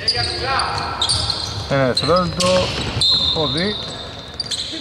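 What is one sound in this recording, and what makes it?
Basketball shoes squeak sharply on a wooden court in a large echoing hall.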